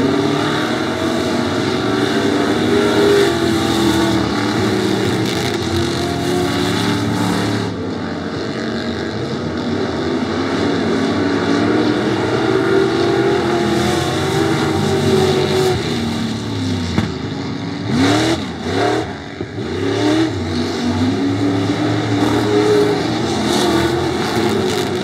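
Race car engines roar loudly, revving up and down.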